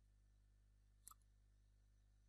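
A game menu clicks shut.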